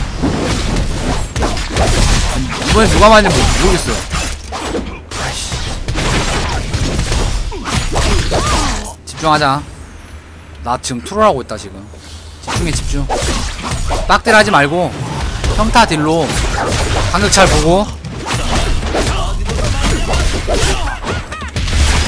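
Game sword strikes and spell effects clash rapidly.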